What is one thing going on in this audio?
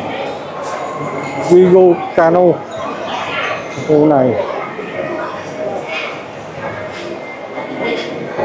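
A crowd murmurs and chatters in a busy indoor hall.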